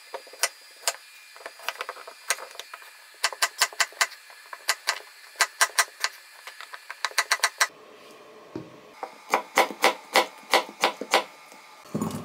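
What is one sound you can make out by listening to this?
A knife chops cucumber on a wooden board with quick knocks.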